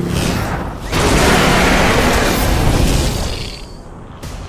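A huge machine roars and rumbles loudly.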